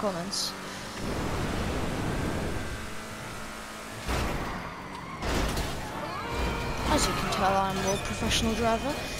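A race car engine roars as the car speeds along.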